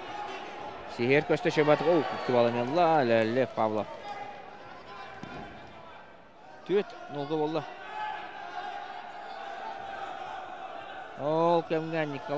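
Men in the crowd shout loudly in short bursts.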